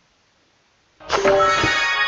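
A bright, cheerful game jingle plays.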